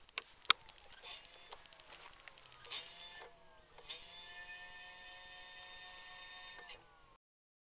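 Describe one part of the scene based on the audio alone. An electric motor whines as a wheel spins up.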